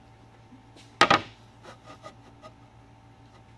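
Small wooden knocks and taps sound nearby.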